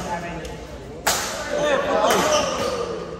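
Badminton rackets strike a shuttlecock in an echoing hall.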